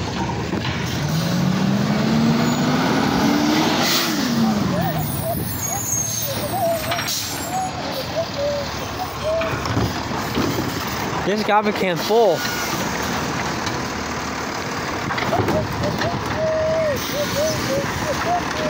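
A garbage truck's hydraulic arm whines as it lifts a bin.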